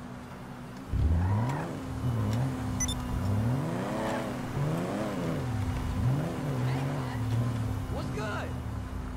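A car engine revs up and pulls away.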